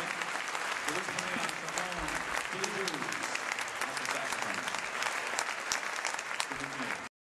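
A big band plays jazz.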